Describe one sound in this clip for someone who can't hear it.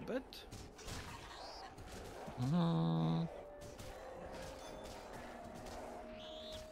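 Magical battle effects whoosh and chime.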